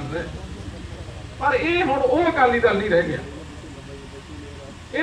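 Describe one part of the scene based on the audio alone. A crowd of men murmurs in the background.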